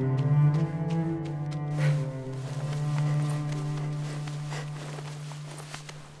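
Leaves rustle as a figure climbs a vine.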